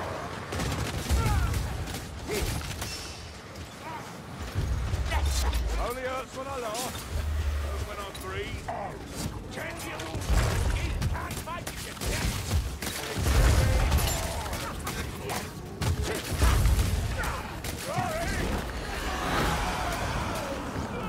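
Heavy weapons clash and thud in combat.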